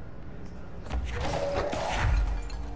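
A loud blast bursts and crashes.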